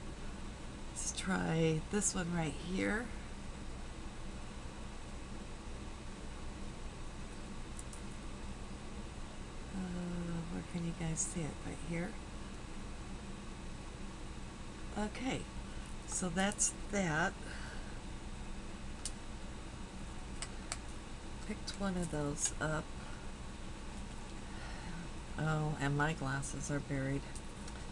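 An older woman talks close to a microphone in short bursts.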